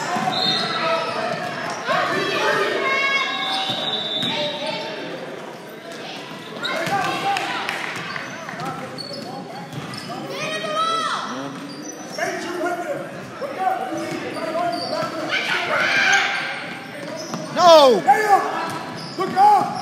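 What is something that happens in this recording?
Young players and spectators call out and cheer in a large echoing gym.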